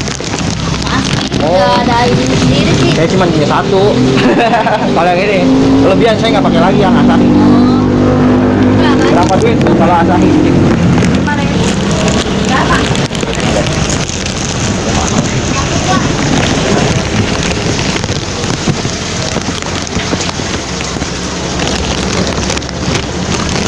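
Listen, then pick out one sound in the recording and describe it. Plastic bags rustle close by.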